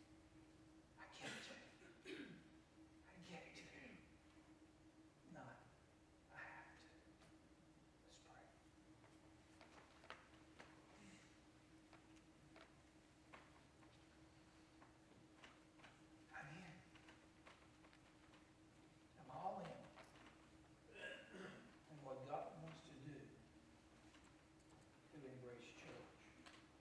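An elderly man speaks calmly into a microphone in an echoing hall, pausing often.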